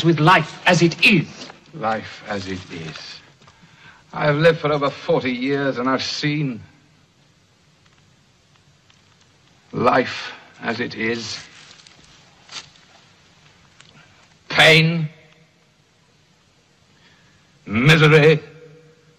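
A man speaks slowly and wearily, close by.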